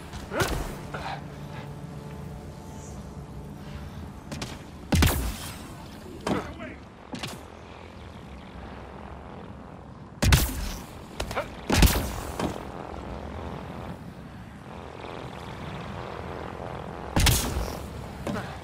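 Heavy thuds and blasts from a video game sound now and then.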